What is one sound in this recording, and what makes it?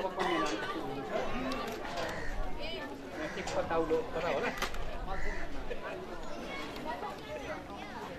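A crowd of men and women talk over one another nearby, outdoors.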